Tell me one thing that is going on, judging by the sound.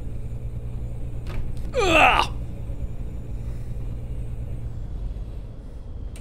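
A truck engine hums steadily at a low pitch.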